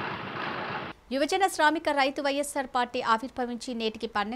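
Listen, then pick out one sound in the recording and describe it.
A woman reads out the news clearly through a close microphone.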